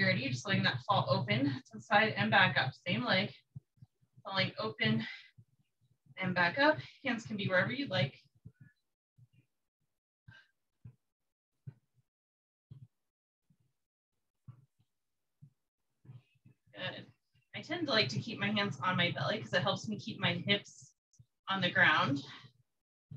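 A woman speaks calmly, giving instructions, heard clearly from a short distance.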